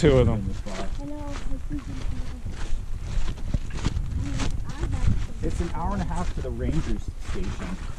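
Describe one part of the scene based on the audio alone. Wind blows and buffets steadily outdoors.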